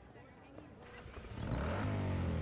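A motorcycle engine starts up and revs.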